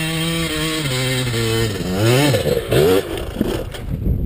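A dirt bike engine revs hard, its pitch rising and falling.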